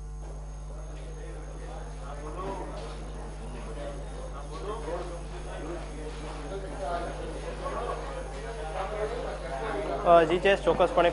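A crowd of people murmurs indoors.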